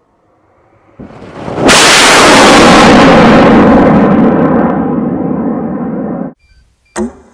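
A rocket motor ignites with a loud, roaring blast that slowly fades.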